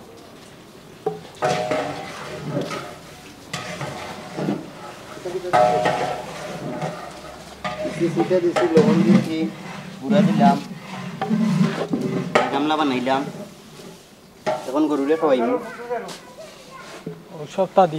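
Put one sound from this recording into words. Dry straw rustles as a stick stirs it in a stone tub.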